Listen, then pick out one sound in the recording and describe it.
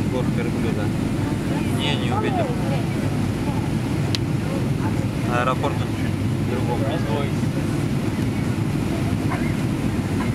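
A jet engine roars steadily inside an airplane cabin.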